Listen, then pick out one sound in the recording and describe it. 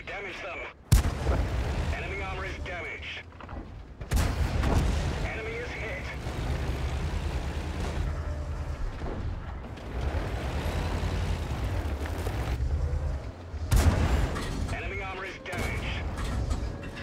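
A tank engine rumbles.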